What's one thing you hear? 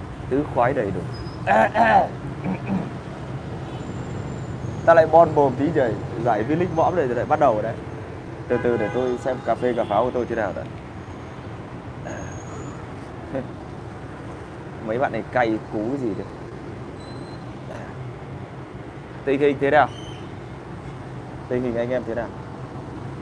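A young man speaks calmly close to a microphone, in short bursts with pauses.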